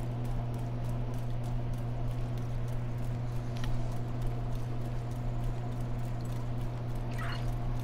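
Footsteps run on wet pavement.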